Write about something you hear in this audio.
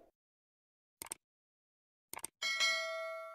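A mouse button clicks twice.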